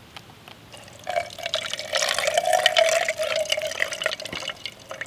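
Water pours from a flask into a metal cup.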